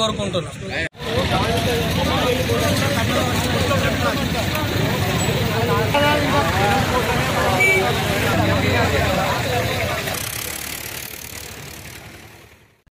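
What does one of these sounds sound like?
A crowd of men and women talk and argue loudly outdoors.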